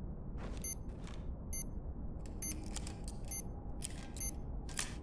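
An electronic device beeps at a steady, quick pace.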